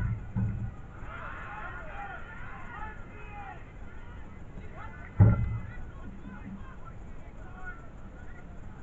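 Distant players shout across a football pitch.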